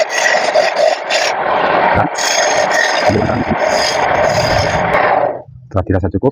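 A chisel scrapes and cuts against spinning wood.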